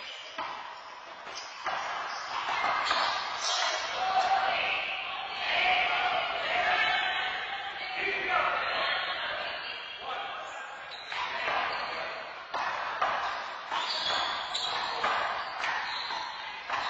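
A rubber ball smacks against walls and the floor, echoing in a large hall.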